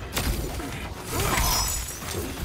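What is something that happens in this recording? Ice shatters and crackles.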